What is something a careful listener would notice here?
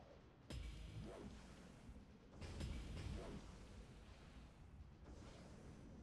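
Weapons fire with sudden blasts in a video game.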